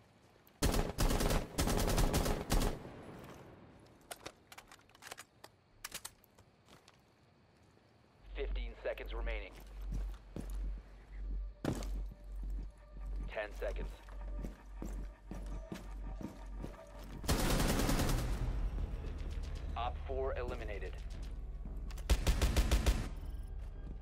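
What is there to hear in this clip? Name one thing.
Rapid gunshots ring out in short bursts.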